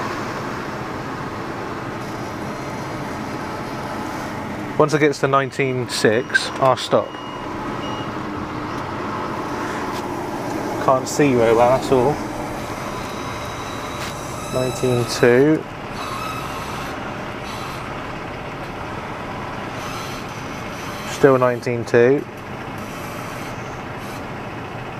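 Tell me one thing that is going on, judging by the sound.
A telehandler engine hums steadily nearby.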